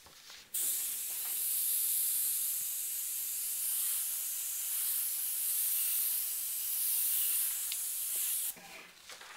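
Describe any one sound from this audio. An airbrush hisses steadily as it sprays paint.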